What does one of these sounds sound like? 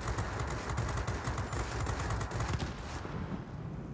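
A loud explosion booms.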